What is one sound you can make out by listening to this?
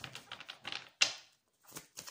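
A card taps down onto a table.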